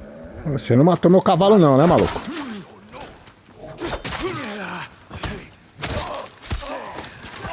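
Steel blades clash and slash.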